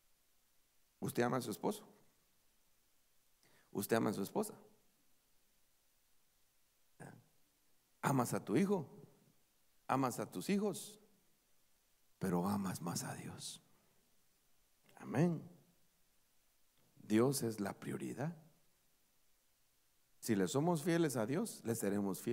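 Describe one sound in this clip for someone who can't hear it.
A man speaks with feeling into a microphone, in short bursts with pauses.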